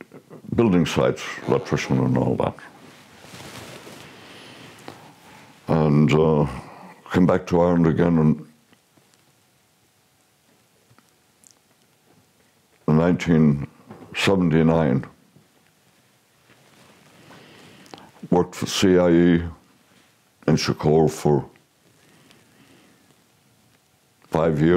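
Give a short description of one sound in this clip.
An elderly man speaks slowly and thoughtfully, close to a microphone, with long pauses.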